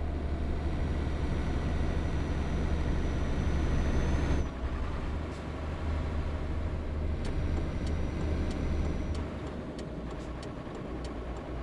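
A truck engine hums steadily and low while driving.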